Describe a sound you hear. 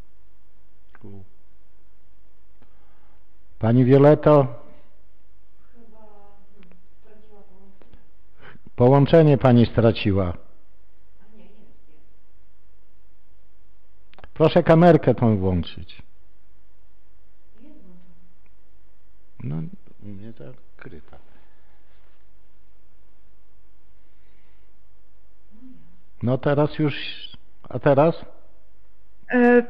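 A man speaks calmly through a microphone in an echoing room, in short bursts with pauses.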